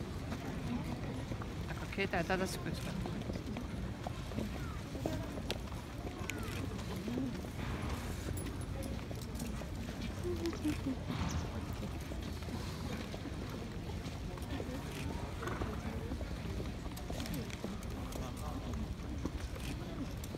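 Horses' hooves clop softly on a path as they are led past.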